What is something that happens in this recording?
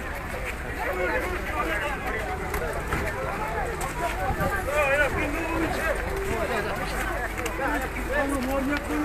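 A crowd of men and women shout and talk over one another close by, outdoors.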